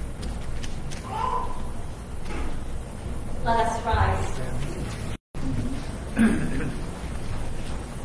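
A man speaks calmly at a distance in a large echoing hall.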